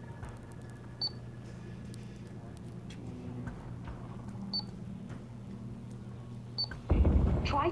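Electronic keypad buttons beep briefly as they are pressed.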